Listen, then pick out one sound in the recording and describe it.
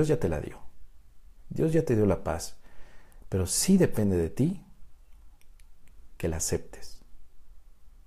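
A man speaks calmly and close up through a clip-on microphone, with short pauses.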